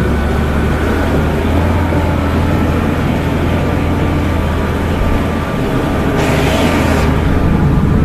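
A small engine drones loudly and steadily close by.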